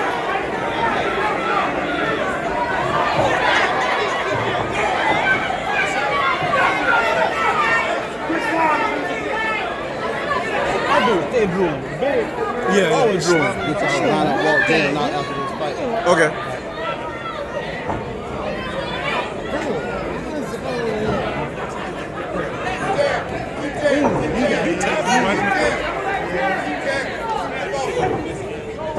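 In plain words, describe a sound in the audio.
A crowd of spectators chatters and shouts nearby.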